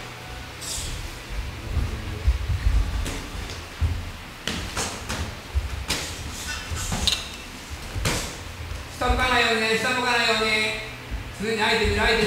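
Feet shuffle and thud on a boxing ring floor.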